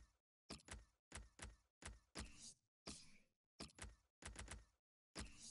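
Game menu sounds click and swoosh in quick bursts.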